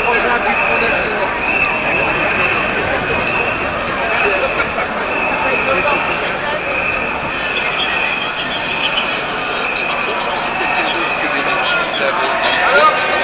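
A crowd of marchers chatters and murmurs outdoors.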